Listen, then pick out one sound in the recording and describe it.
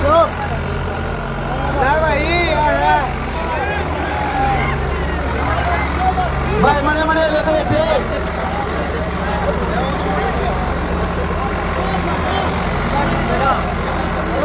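Tractor engines rumble steadily close by.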